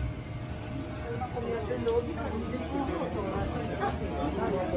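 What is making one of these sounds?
Adult men and women chatter nearby.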